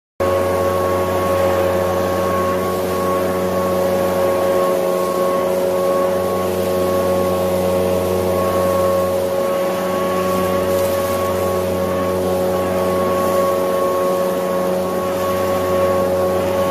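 Dry leaves rustle and scatter in the blast.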